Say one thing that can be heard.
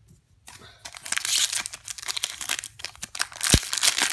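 A foil card pack crinkles and tears as fingers open it.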